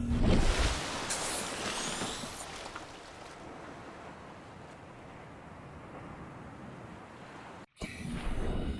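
Waves wash and lap gently at the surface.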